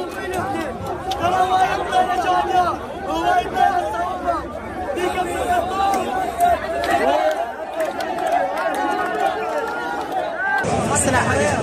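A large crowd of men chants and shouts loudly outdoors.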